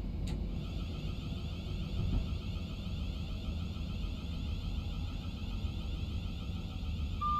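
A train rumbles steadily along the tracks with a low drone.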